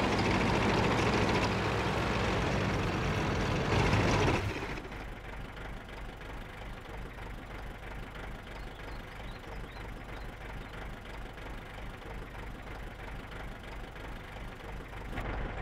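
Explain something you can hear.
A heavy tank engine roars loudly, then drops to a low idling rumble.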